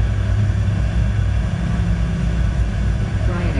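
Tyres rumble on a runway.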